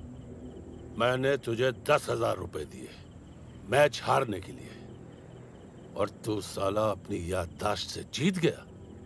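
A middle-aged man speaks in a firm, stern voice.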